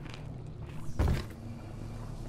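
A heavy body lands with a dull thud on a hard floor.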